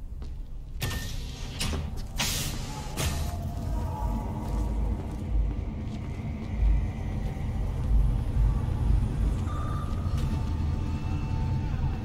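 A low, steady rumble of a busy street fills the space beyond the door.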